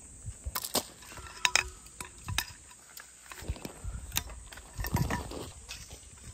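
A wooden pole knocks and scrapes on gravel.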